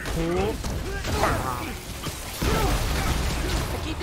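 Electric blasts crackle and boom.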